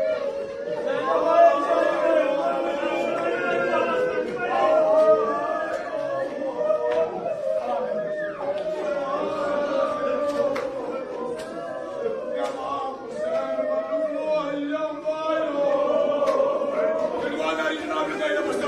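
A crowd of men chants loudly in an echoing hall.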